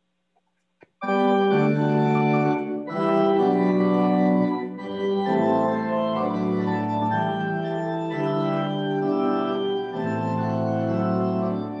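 An organ plays full, sustained chords in an echoing room.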